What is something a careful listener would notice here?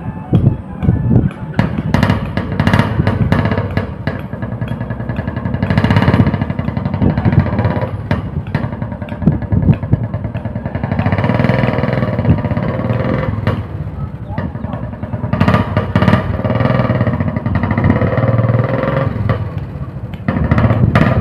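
A motorcycle engine rumbles and sputters close by.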